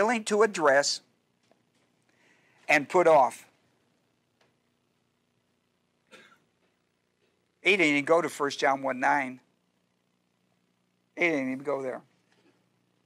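A middle-aged man speaks calmly into a microphone, in short bursts with pauses.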